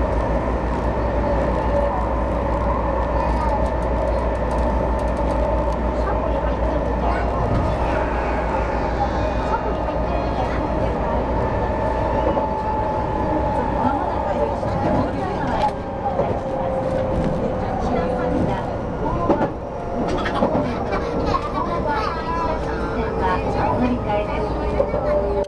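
A train hums and rumbles steadily along the track, heard from inside the cab.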